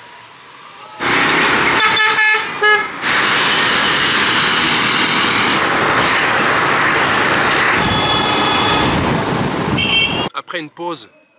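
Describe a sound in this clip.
A motorcycle engine hums while riding along a road.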